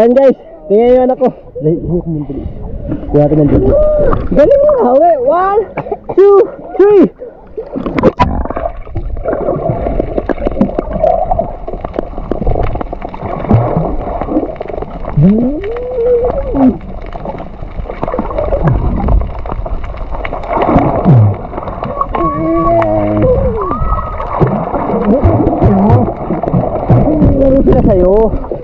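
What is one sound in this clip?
Water sloshes and bubbles around swimmers.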